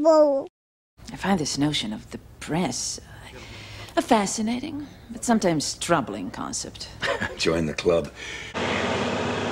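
A woman speaks in a calm, questioning voice.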